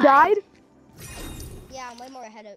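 A sword swooshes through the air.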